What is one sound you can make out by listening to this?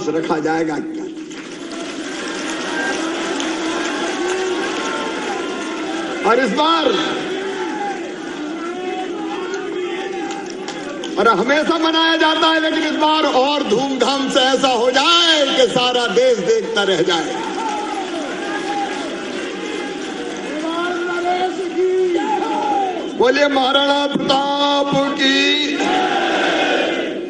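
A middle-aged man gives a speech with animation through a microphone and loudspeakers in a large echoing space.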